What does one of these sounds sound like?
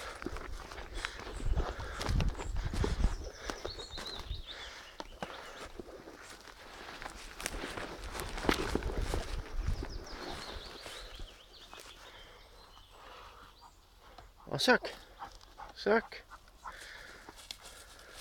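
A dog rustles through dense undergrowth close by.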